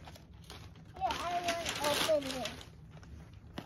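A young girl talks excitedly nearby.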